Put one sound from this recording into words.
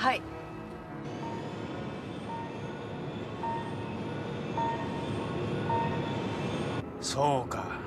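A low engine hums steadily underwater.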